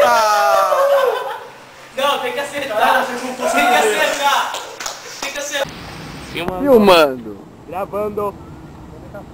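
Young men talk and laugh loudly close by.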